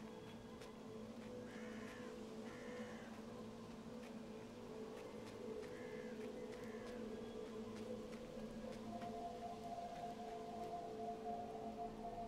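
A small animal's paws patter lightly on dirt.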